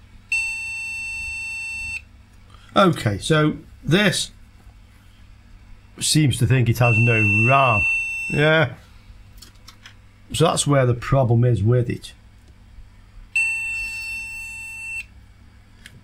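A multimeter gives a steady high beep.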